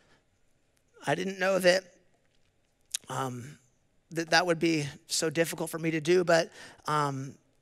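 A man speaks slowly and earnestly into a microphone, with long pauses.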